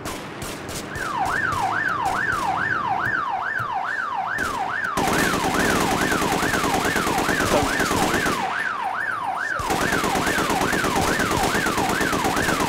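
A police siren wails steadily up and down.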